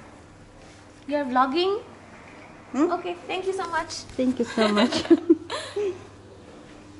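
A middle-aged woman talks and laughs close by.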